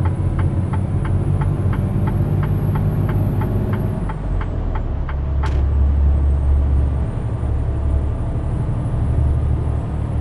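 A truck engine rumbles steadily while driving along.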